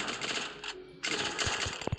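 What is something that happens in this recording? A short victory fanfare plays in a video game.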